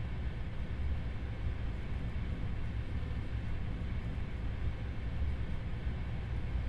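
A cart rumbles steadily along rails.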